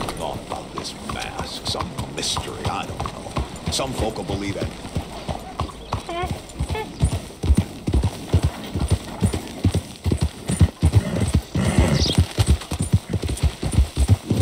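Horse hooves clop steadily on the ground.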